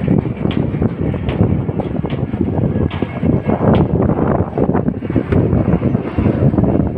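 Wind buffets the microphone loudly outdoors.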